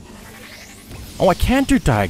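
A blaster fires a sizzling energy shot.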